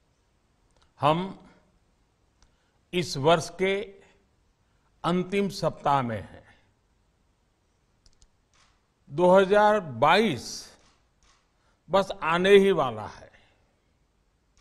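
An elderly man speaks calmly and deliberately into a microphone, in short phrases with pauses.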